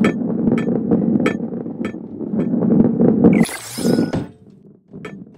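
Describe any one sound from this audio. Balls roll and rumble along a track.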